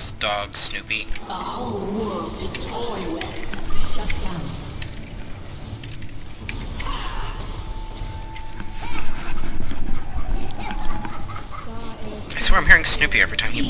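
Spell effects crackle and whoosh in a game battle.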